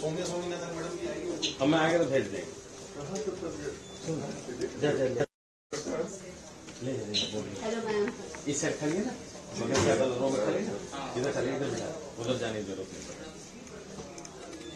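Several men and women talk at once nearby.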